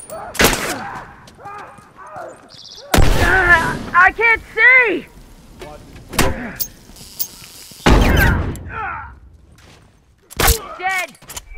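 Gunshots crack in sharp bursts.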